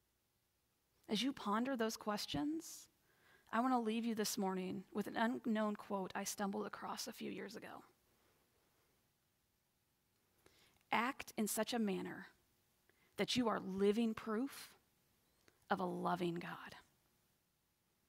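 A young woman speaks calmly into a microphone, heard over an online call.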